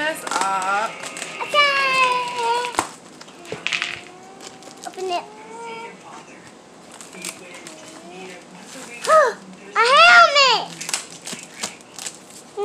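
Plastic bubble wrap crinkles and rustles in a woman's hands.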